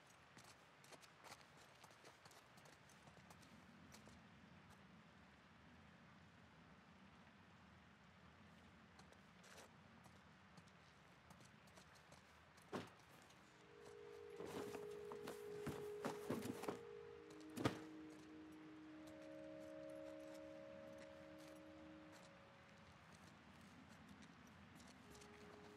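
Footsteps scuff softly on a gritty floor.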